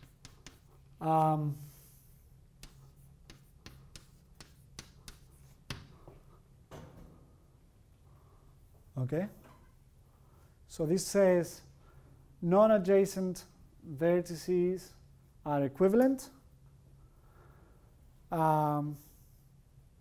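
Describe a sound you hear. A man speaks calmly in short phrases in an echoing room.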